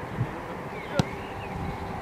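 A football is kicked.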